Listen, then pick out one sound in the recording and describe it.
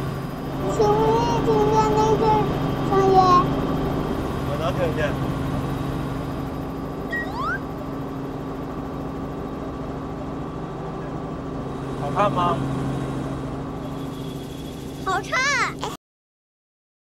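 A small boy speaks through a headset intercom.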